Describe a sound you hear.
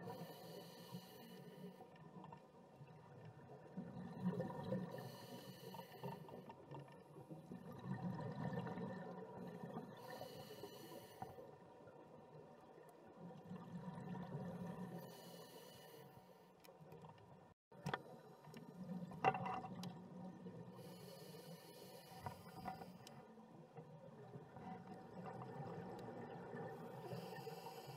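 A diver breathes slowly through a regulator.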